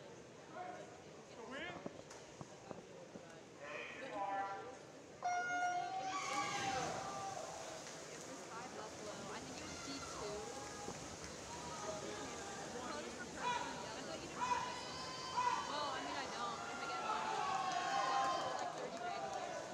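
A crowd cheers, whistles and shouts.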